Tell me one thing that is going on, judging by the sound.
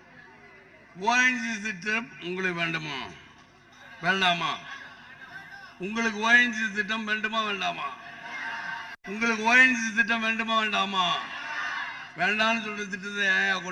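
A man speaks forcefully into a microphone over loudspeakers.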